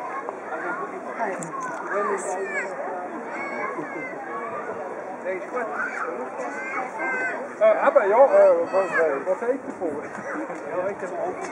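Many men and women chatter and talk over one another close by outdoors.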